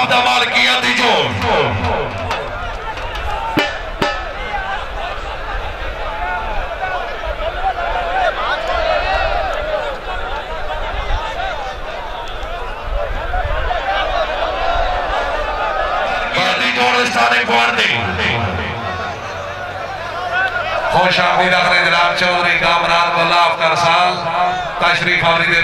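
A large crowd of men chatters and shouts outdoors.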